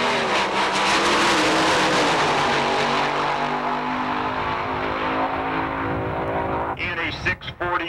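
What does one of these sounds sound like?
A dragster engine roars loudly and fades as the car speeds away.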